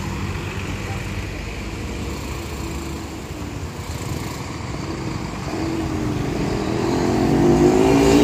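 A large bus engine rumbles steadily nearby.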